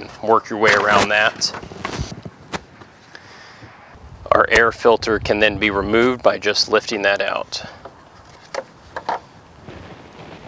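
A plastic air filter scrapes and clicks as it is fitted into its housing.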